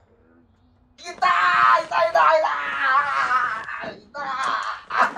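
A man groans and yells loudly.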